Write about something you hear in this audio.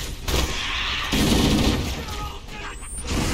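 A plasma grenade explodes with a loud burst.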